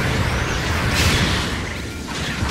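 Beam weapons fire with sharp electric zaps.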